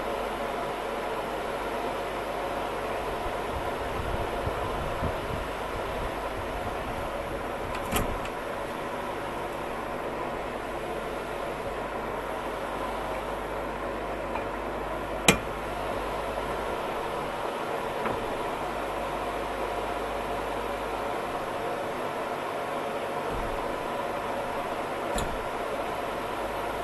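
A machine runs steadily.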